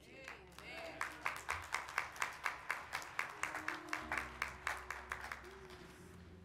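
A woman claps her hands in a steady rhythm.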